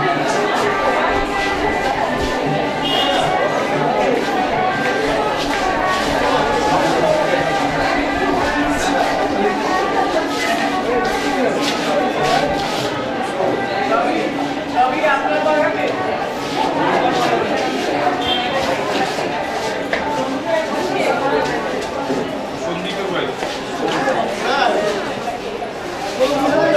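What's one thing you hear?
A crowd of men and women chatter close by, indoors.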